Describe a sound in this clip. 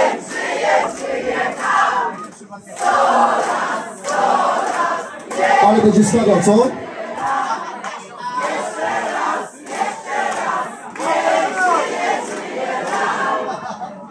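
A man sings loudly into a microphone through loudspeakers.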